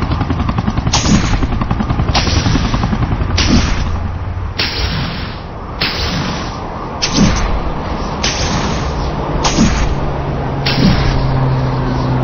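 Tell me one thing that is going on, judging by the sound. Web lines swish in short bursts during fast swinging.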